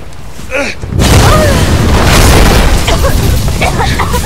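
A fire roars loudly.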